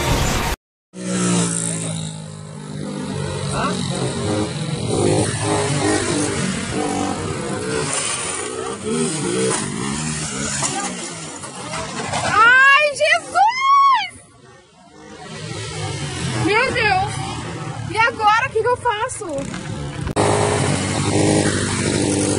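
A motorcycle engine revs loudly nearby.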